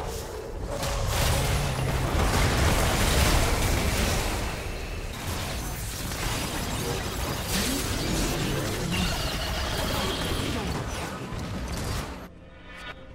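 Spell effects and combat sounds crash and whoosh in a game fight.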